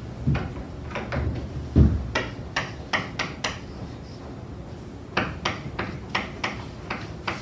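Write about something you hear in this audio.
Chalk taps and scrapes on a board in quick strokes.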